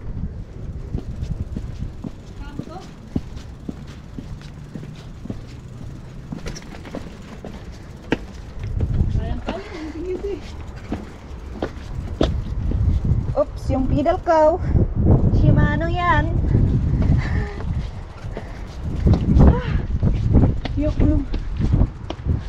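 A bicycle rattles and clatters as it rolls over bumpy stone.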